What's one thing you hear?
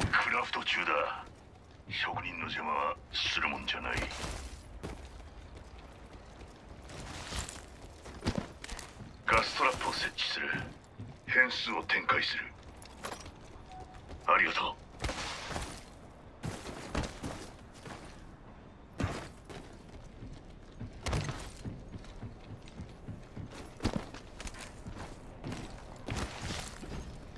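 Footsteps patter quickly on hard ground and metal.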